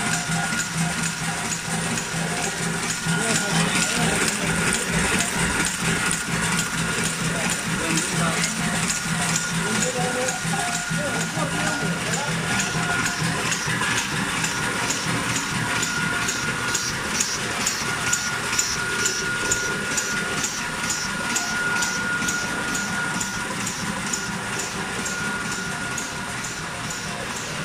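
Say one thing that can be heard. A packaging machine clatters and hums steadily with a rapid regular ticking.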